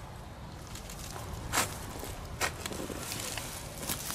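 A hoe chops into dry ground with dull thuds.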